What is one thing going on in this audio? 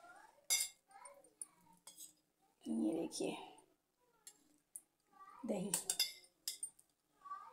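A metal spoon scrapes and clinks against a steel bowl.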